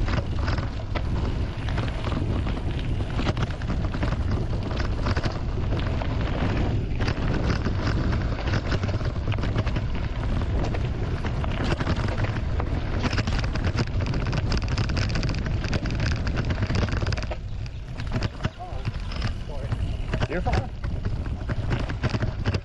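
A bicycle rattles and bumps over a rough dirt trail.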